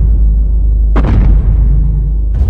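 A giant creature's blazing beam roars and crackles.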